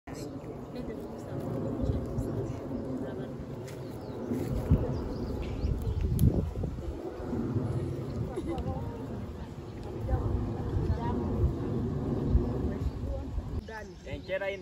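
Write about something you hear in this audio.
A crowd of women murmurs and chatters outdoors.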